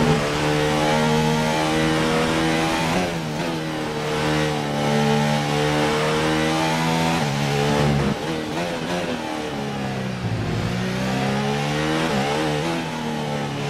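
A racing car engine screams at high revs, dropping sharply as the car brakes and rising again through the gears.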